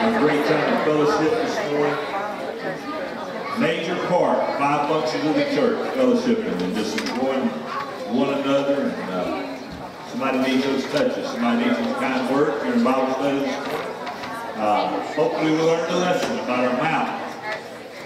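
A man speaks through a microphone, heard over loudspeakers in a large echoing hall.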